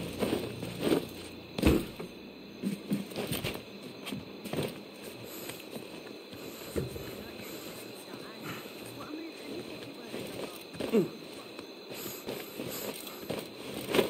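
Hands and feet scrape and thud against stone while climbing.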